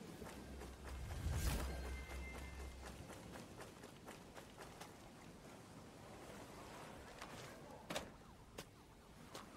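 Footsteps move quickly over grass.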